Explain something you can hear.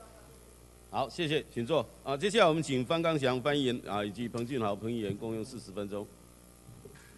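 A middle-aged man speaks formally into a microphone, heard through a loudspeaker in a large room.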